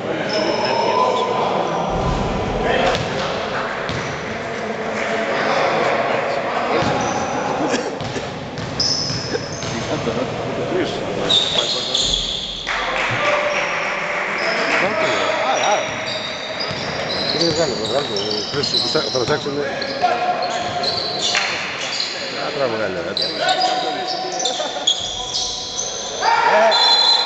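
Spectators and players shout and chatter in a large echoing hall.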